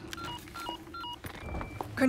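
A radio clicks.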